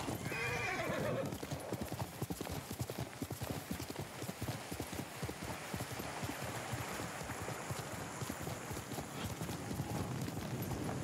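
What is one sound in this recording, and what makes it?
Horse hooves gallop fast over grass.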